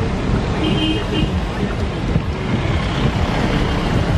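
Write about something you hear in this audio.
A passing vehicle splashes through flooded water close by.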